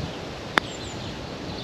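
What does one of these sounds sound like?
A golf putter taps a ball.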